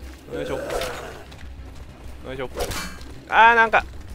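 Blows land with dull thuds in a close fight.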